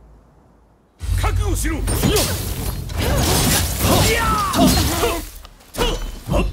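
Swords clash and slash in a fast fight.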